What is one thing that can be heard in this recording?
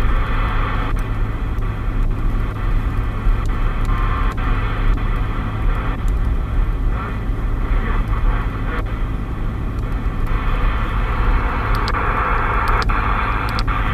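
A radio's channel knob clicks several times.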